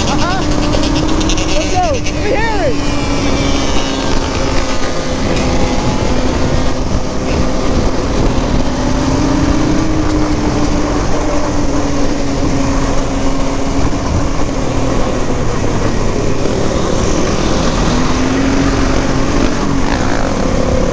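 An ATV engine drones steadily up close.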